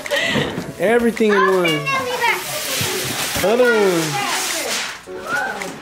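Wrapping paper rips and crackles as a small child tears it.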